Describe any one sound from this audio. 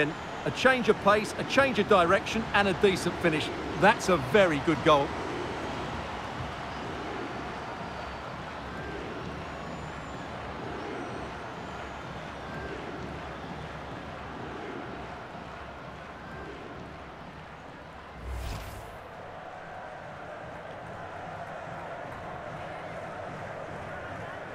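A stadium crowd cheers and roars steadily.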